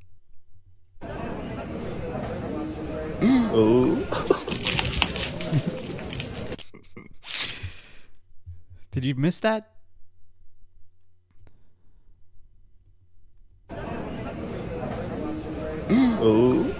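A middle-aged man talks, heard through a speaker over a noisy background.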